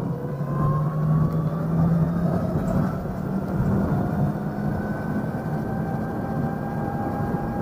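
An electric scooter's motor whines steadily as it rides along.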